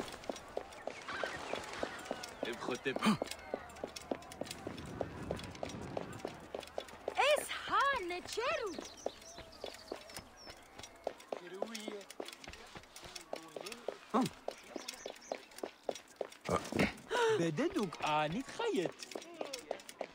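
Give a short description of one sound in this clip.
Quick footsteps run across stone.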